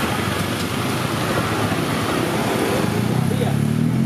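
Motor scooter engines putter past.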